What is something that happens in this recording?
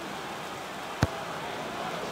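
A ball is struck with a sharp thud.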